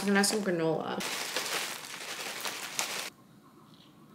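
Cereal pours from a bag into a bowl with a steady rustle.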